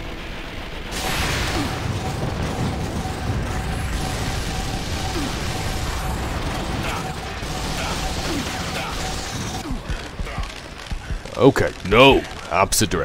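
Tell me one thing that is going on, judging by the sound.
Rapid rifle gunfire rattles in bursts.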